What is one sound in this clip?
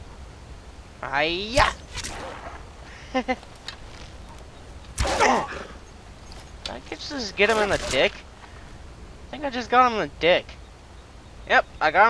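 A wolf snarls and yelps up close.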